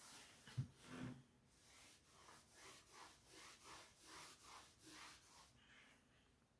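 An eraser rubs across a chalkboard in quick strokes.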